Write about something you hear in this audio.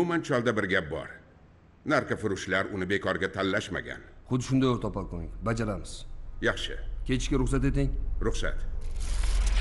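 An elderly man speaks calmly and firmly.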